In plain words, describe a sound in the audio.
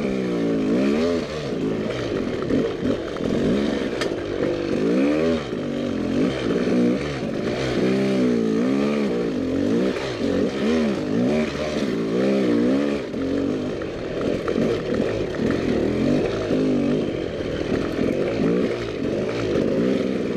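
Tyres crunch over rocks and dry brush.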